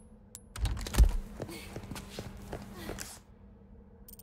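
Footsteps run across a stone floor in a large echoing hall.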